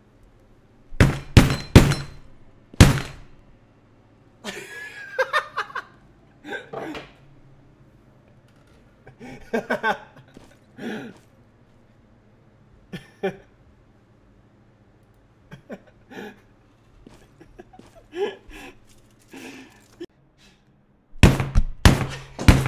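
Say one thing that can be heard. A wooden mallet bangs hard on a desk.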